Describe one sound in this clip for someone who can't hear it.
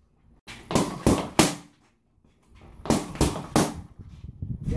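Boxing gloves smack sharply into punch mitts in quick bursts.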